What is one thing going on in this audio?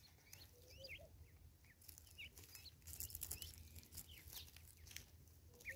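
Birds peck rapidly at seed on a wooden stump.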